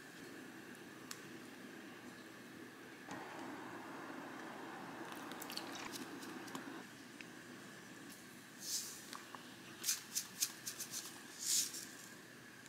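A spoon scrapes and stirs in a pan.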